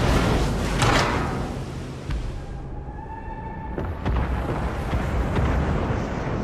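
Heavy naval guns fire with loud, deep booms.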